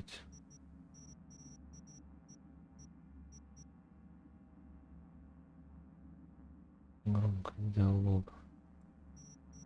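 Short electronic beeps tick as a menu setting is adjusted.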